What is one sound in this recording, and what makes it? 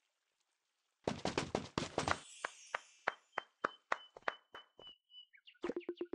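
Wooden fence pieces knock and clatter into place.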